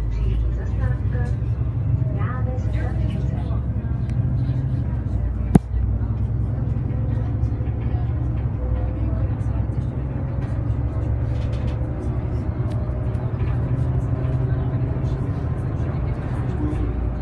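A bus engine hums low and steady from inside the bus.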